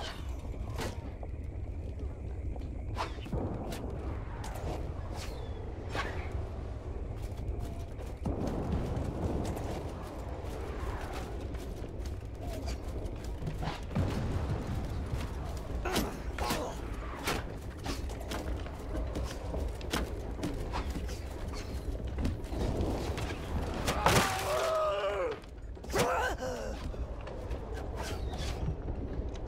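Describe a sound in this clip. Gunshots crack again and again across a battlefield.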